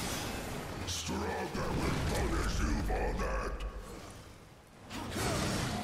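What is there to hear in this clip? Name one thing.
A deep rumble booms and fades.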